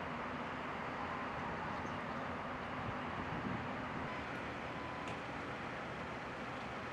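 Water laps against a harbour wall.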